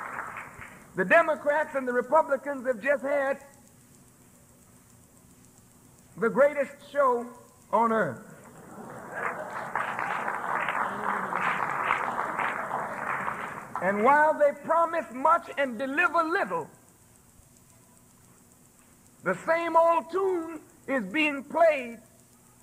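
A man speaks forcefully into a microphone, heard through loudspeakers.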